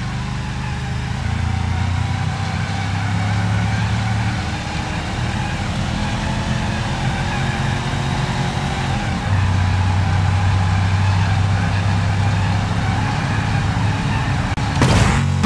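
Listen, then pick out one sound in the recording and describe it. A car engine roars as it speeds up.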